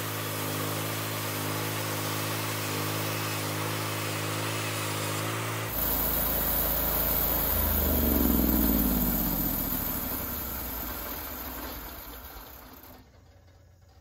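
A portable band sawmill engine runs, then winds down.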